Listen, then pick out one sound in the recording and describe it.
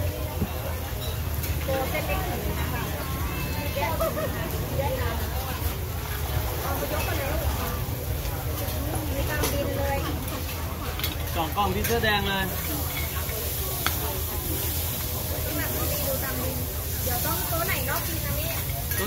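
Hot oil sizzles in a wide pan.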